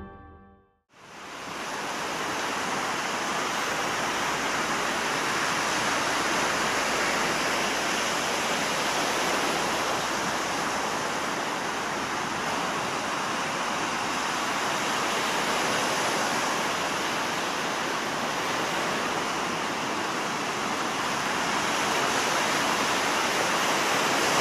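Waves wash steadily onto a shore.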